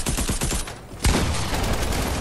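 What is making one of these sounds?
A gun fires a loud blast.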